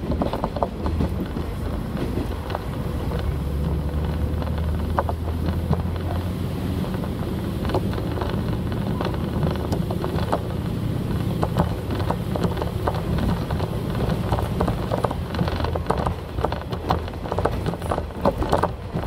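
A diesel railcar's engine drones low, heard from inside the moving train.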